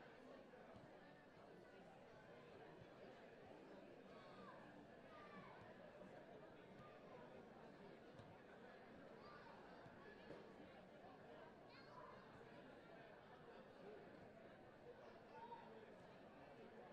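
Distant players shout and call out across an open pitch outdoors.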